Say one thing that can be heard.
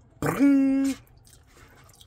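A young man hums a long, pleased note up close.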